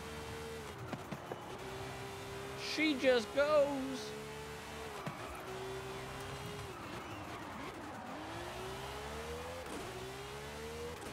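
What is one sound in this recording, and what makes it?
A sports car engine revs high and shifts gears as the car races.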